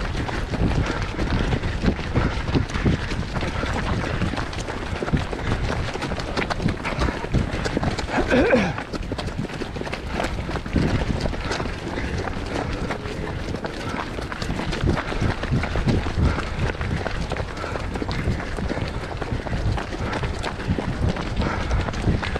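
Several runners' footsteps crunch steadily on a gravel path.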